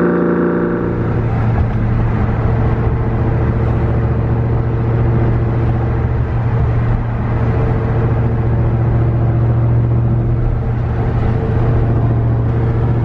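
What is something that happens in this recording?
A supercharged V8 engine drones from inside the car while cruising.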